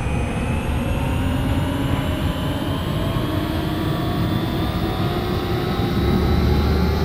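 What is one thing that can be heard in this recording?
Train wheels rumble over the rails.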